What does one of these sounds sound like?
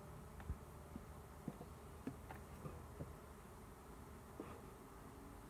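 Wooden hive boxes knock and bump together.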